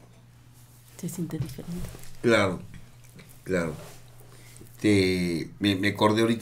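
Women laugh close to microphones.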